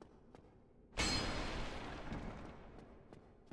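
Wooden boards smash and clatter apart.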